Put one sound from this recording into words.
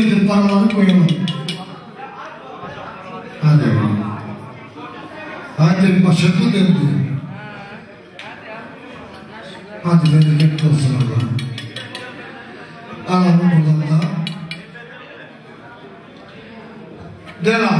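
A man speaks through a microphone and loudspeakers in loud bursts, with animation.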